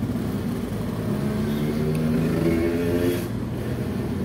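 A car engine revs up with rising pitch, then drops off.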